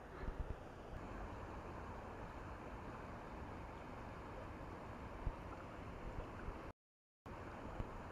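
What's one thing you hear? Water rushes steadily over a weir nearby.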